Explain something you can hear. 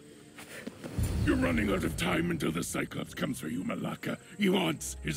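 A gruff man speaks forcefully and threateningly.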